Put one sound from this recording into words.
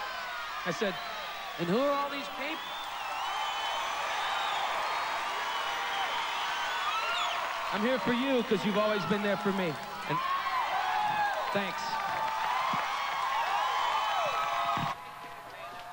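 A large crowd cheers and screams in a big arena.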